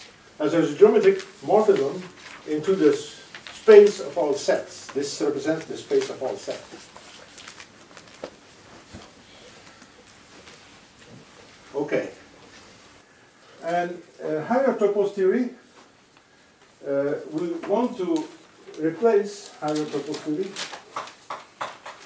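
An elderly man lectures calmly, with pauses.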